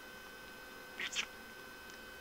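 A budgie gives a short, sharp chirp.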